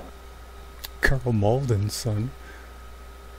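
A middle-aged man talks briefly and loudly into a close microphone.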